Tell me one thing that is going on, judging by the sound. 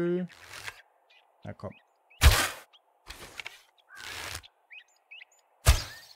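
A bowstring twangs as an arrow is shot.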